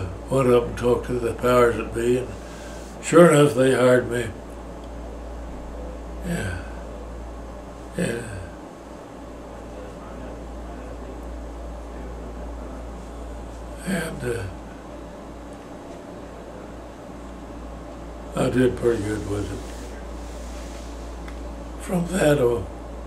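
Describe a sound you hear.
An elderly man speaks slowly and calmly close to a microphone, with long pauses.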